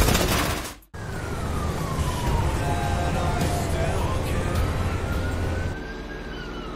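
A pickup truck engine rumbles as it drives past.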